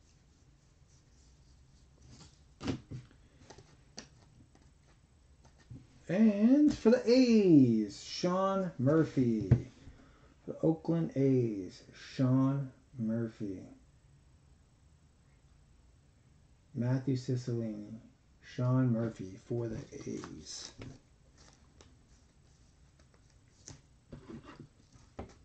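Stiff cards rustle and click as they are shuffled between hands.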